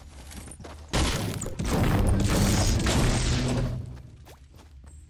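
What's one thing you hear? A pickaxe strikes wooden boards with sharp knocks.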